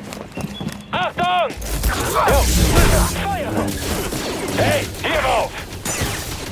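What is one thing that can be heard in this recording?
Blaster shots zap in quick bursts.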